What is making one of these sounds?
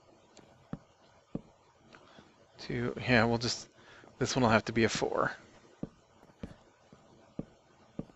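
Wooden blocks are placed with soft, dull knocks.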